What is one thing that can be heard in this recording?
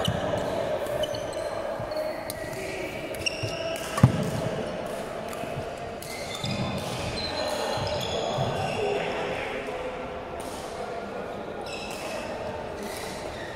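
Badminton rackets smack a shuttlecock.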